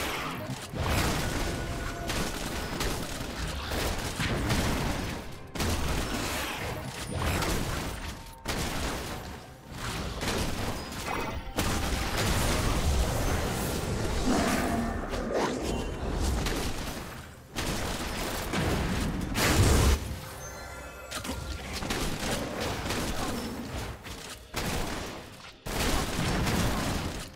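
Video game combat effects whoosh and clash.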